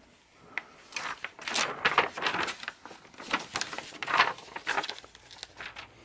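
Glossy book pages rustle and flap as they turn.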